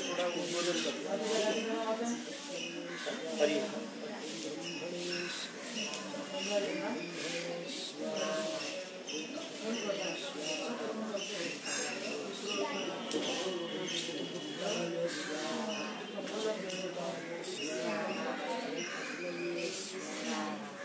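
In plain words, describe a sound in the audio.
A man chants steadily and rhythmically nearby.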